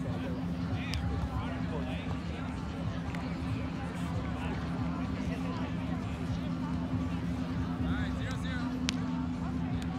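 A volleyball is struck with a dull thump at a distance.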